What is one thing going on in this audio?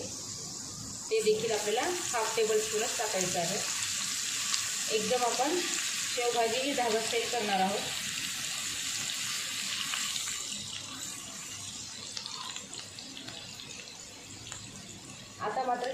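A spatula stirs and scrapes against a pan.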